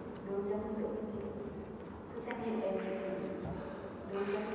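Billiard balls knock together with hard clicks.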